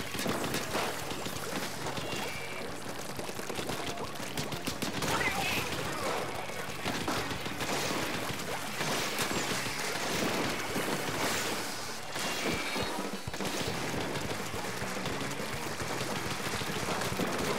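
Ink sprays and splatters in quick bursts.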